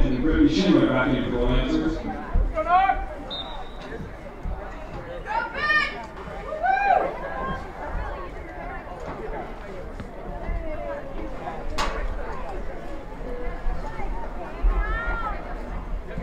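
Young players shout to one another from across an open outdoor field.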